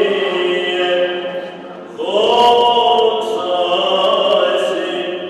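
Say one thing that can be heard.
A crowd of women and men sings together in long, held notes.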